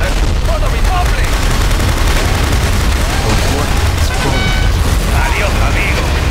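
Heavy gunfire rattles in quick bursts.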